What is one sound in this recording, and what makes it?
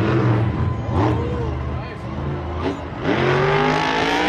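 A monster truck crashes and tumbles onto dirt.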